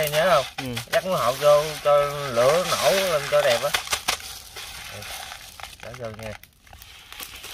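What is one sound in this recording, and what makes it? Coarse salt grates and rustles as hands rub it over a fish.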